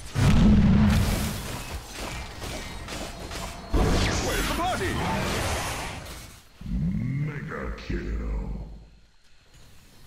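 Game sound effects clash and boom loudly.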